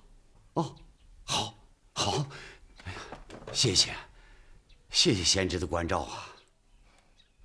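An older man talks with animation, close by.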